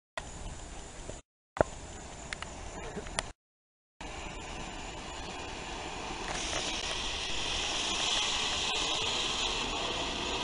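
A firework fountain sprays sparks with a loud, crackling hiss.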